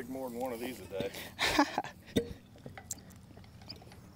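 A metal tool scrapes and pokes at dry dirt.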